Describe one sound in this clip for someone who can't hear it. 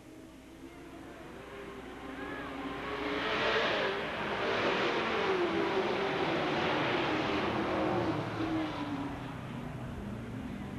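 Several race car engines roar loudly as the cars speed past.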